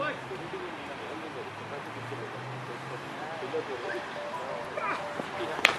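Several men talk and call out at a distance outdoors.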